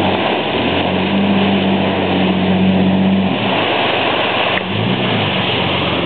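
An engine rumbles as a vehicle drives close by.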